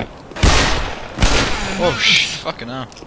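Gunshots bang loudly in an echoing space.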